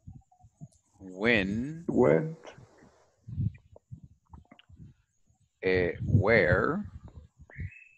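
A young man speaks clearly through an online call, in short phrases.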